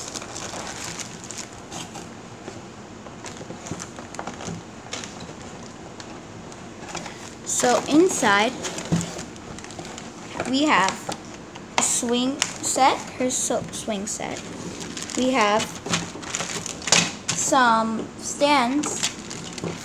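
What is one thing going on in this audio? A plastic bag crinkles as hands handle it.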